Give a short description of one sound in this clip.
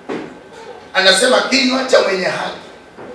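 A man speaks loudly through a microphone.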